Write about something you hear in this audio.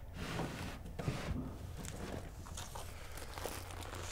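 Rope rustles as a coil is handled.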